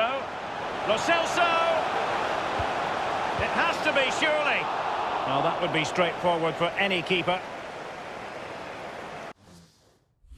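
A stadium crowd cheers and chants loudly.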